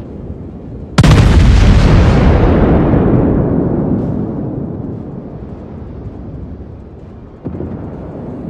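Heavy naval guns fire with a huge, deep boom that slowly rumbles away.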